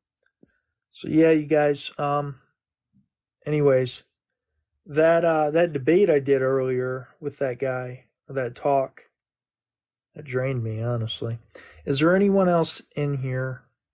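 A young man speaks calmly and close to a microphone, as if on an online call.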